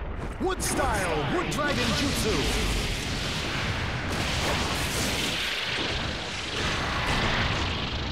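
A deep, rumbling blast roars and crackles.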